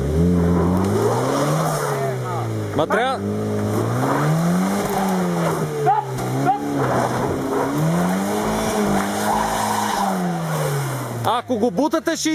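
A car engine revs up and down repeatedly, straining.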